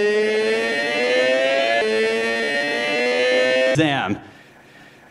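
A motorcycle engine roars and climbs in pitch as it accelerates.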